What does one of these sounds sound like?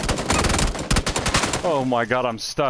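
Rapid gunshots ring out close by.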